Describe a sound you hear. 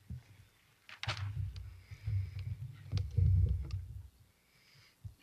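A woman speaks quietly into a microphone.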